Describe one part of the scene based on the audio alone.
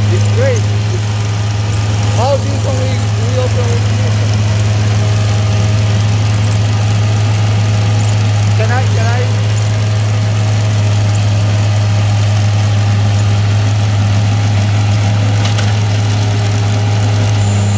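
A trencher's digging chain scrapes and churns through soil.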